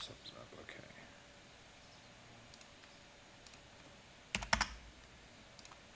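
A game menu gives soft clicks.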